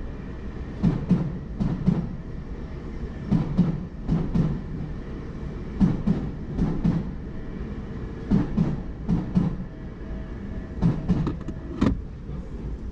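A train rattles past, its wheels clacking rhythmically over the rail joints.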